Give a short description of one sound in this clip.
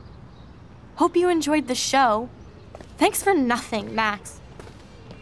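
A young woman speaks bitterly, close by.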